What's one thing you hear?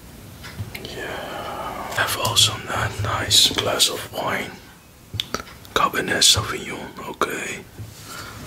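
A young man speaks close to the microphone with animation.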